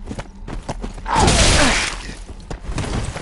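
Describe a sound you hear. A beast lets out a loud, rough snarl.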